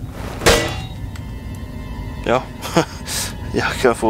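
A metal cabinet door creaks open.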